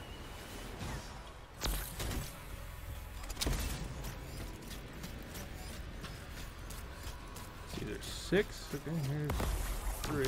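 Heavy footsteps thud and crunch on snow.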